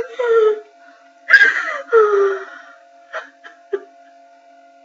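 A young woman close by groans and cries out in frustration.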